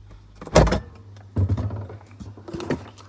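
Bottles rattle as a fridge door swings open.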